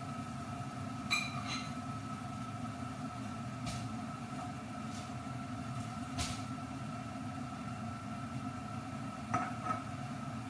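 A metal kettle clanks against a stove.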